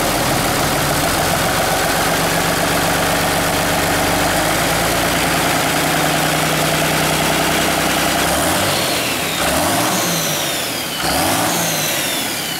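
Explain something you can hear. A diesel engine runs with a loud, steady clattering rumble.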